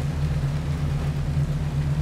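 Rain falls steadily outdoors.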